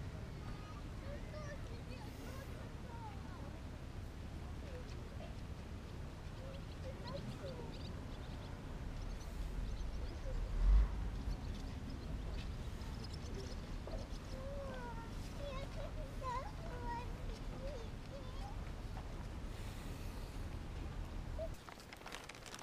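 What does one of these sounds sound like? Wind rumbles and buffets outdoors.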